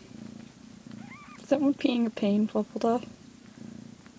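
A kitten meows several times in quick succession.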